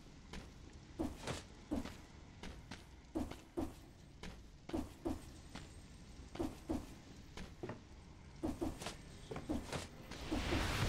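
A game character lands jumps with soft, repeated thuds.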